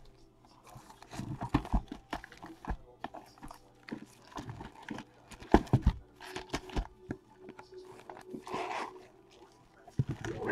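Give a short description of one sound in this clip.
Cardboard boxes knock and rub together as they are lifted and moved.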